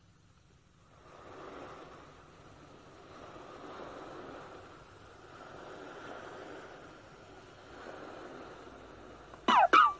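Soft, gentle music plays from a game's speaker.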